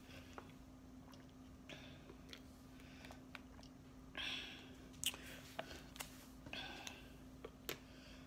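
A woman gulps water from a plastic bottle.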